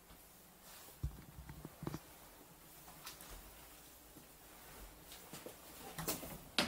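Footsteps thud and creak.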